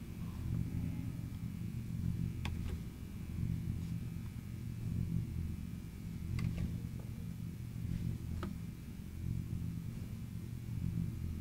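A glowing portal hums with a low, steady drone.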